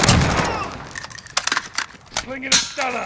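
Metal clicks and clatters as a rifle is handled.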